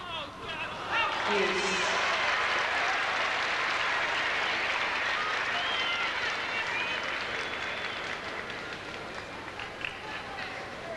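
A large crowd applauds and cheers loudly, then slowly quietens.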